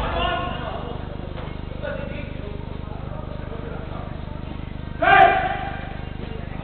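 Men shout to each other across an echoing indoor hall.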